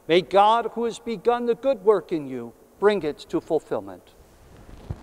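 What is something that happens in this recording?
An elderly man chants in a sung voice through a microphone in a large echoing hall.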